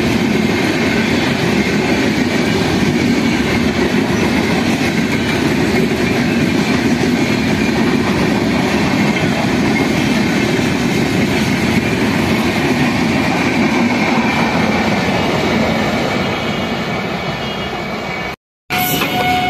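A passenger train rumbles and clatters past on the tracks close by.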